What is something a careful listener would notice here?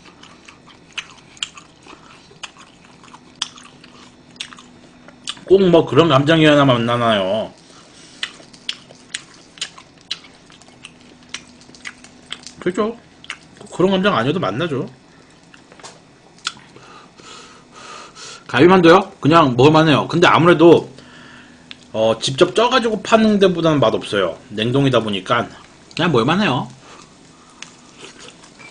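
A young man chews and slurps food close to a microphone.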